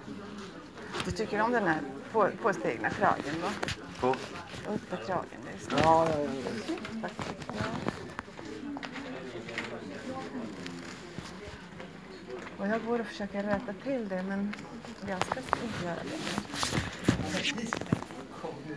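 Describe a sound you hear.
A middle-aged man speaks close by, calmly and with animation.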